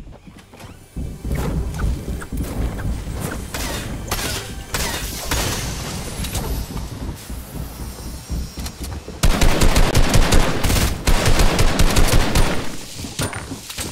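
Footsteps run quickly over a hard roof and grass.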